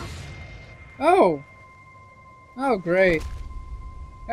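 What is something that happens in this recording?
A woman cries out in pain.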